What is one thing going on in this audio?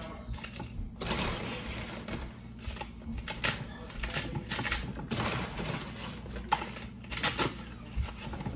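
Chips pour and rattle into a metal can.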